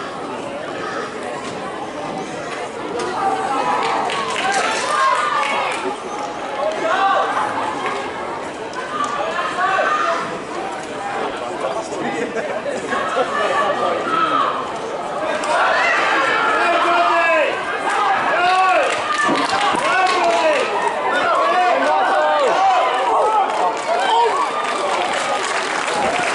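A crowd of spectators cheers and shouts close by, outdoors.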